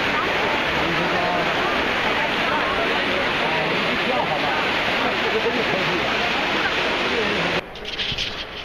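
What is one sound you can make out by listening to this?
Water from a large fountain splashes and rushes loudly outdoors.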